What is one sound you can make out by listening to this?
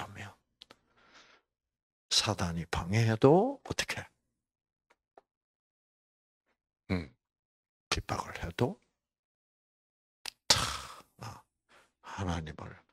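An elderly man speaks with animation into a microphone, with pauses.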